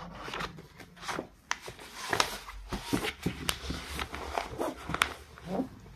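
Paper rustles softly as a notebook is handled.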